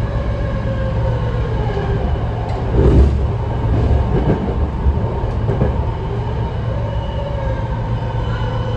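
A train's motor whines with a pitch that dips and rises.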